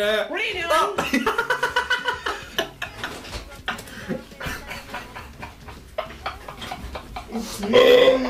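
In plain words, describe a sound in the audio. Two young men laugh loudly and heartily.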